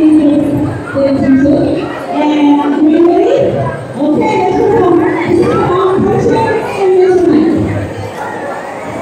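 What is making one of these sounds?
A woman sings into a microphone through loudspeakers in a large echoing hall.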